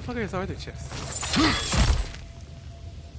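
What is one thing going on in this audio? A blade bursts into flame with a roaring whoosh.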